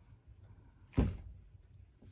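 A wooden board knocks down onto a table.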